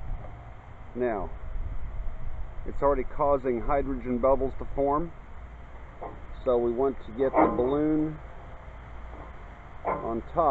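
A middle-aged man talks calmly, close to the microphone.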